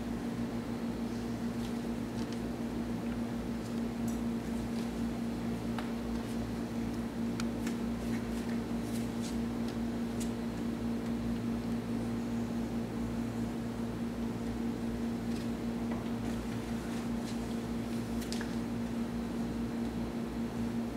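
A turboprop engine hums steadily nearby.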